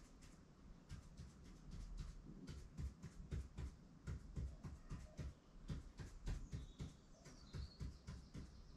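A pen taps and scratches against a hard board.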